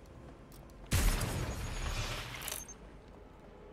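A stun gun fires with a sharp electric crackle.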